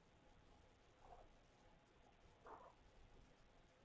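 A kitten mews softly, close by.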